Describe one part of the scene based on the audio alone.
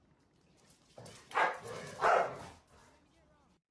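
Two dogs scuffle and thump against each other.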